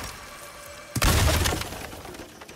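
An axe smashes through a wooden crate with a loud crack.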